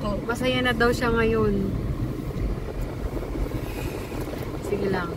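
A car engine hums steadily as the car drives slowly.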